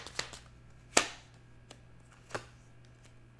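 A card taps on a table.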